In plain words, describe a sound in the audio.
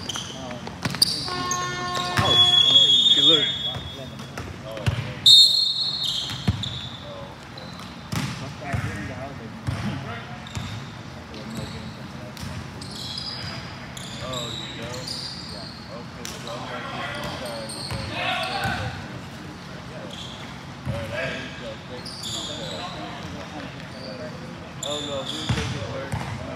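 Young men call out and talk in a large echoing gym.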